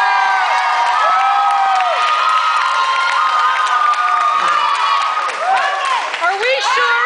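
A crowd cheers and whoops loudly in a large hall.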